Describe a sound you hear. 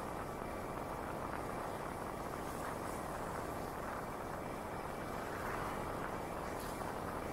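Bicycle tyres roll along a paved road.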